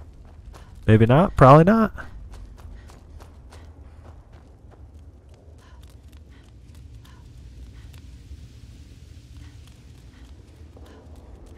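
Flames crackle softly in a pair of hands.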